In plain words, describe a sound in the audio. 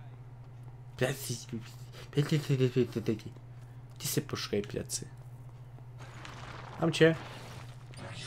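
A young man talks with animation through a close microphone.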